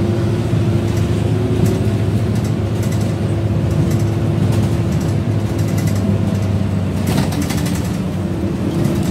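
The bus body rattles and clatters as it drives.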